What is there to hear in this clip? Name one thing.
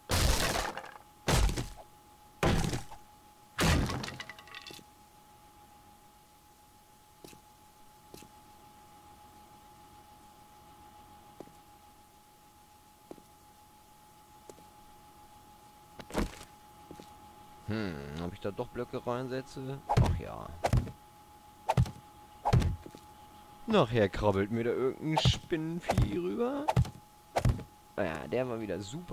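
Heavy blocks thud into place one after another.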